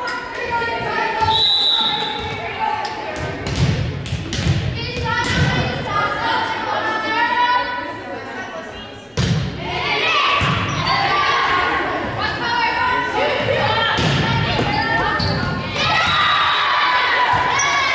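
Young women shout and cheer loudly in a large echoing gym.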